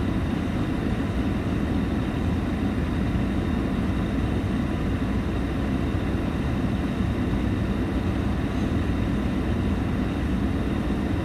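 Cars and trucks pass by steadily on a wide road nearby.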